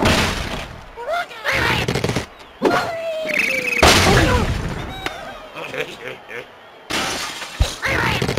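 Playful cartoon sound effects chirp and squeal.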